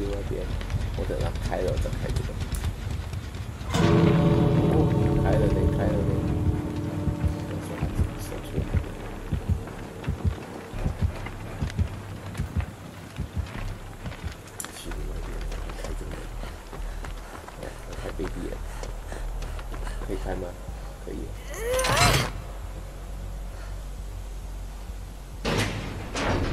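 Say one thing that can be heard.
A young man talks quietly close to a headset microphone.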